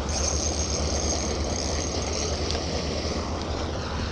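A fishing reel whirs softly as it is cranked.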